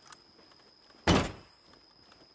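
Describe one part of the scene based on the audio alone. A heavy metal switch clunks loudly.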